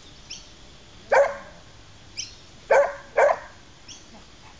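A dog barks a few times.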